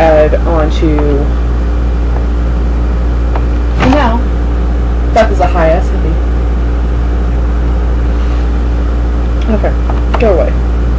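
Young women talk and laugh close to a webcam microphone, in short bursts.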